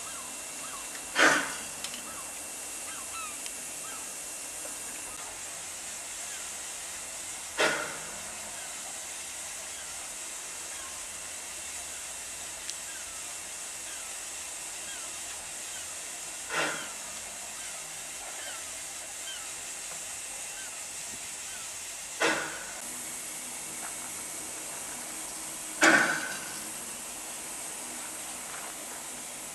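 Steam hisses from a standing narrow-gauge steam locomotive.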